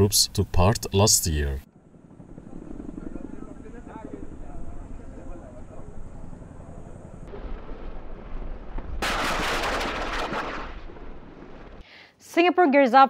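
A helicopter's rotors thud as it flies low overhead.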